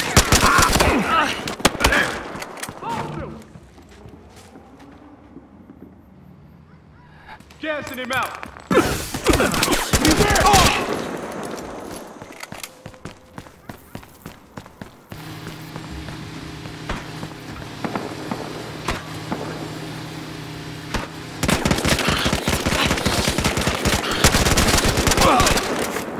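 A rifle fires rapid, loud bursts of shots.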